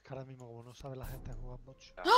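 A sharp slashing sound effect swooshes.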